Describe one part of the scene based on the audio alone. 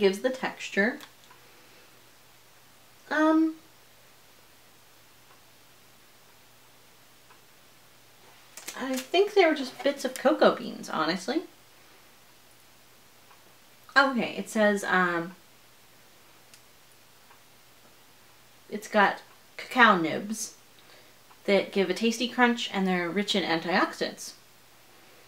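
A woman speaks close by, calmly and in short bursts with pauses.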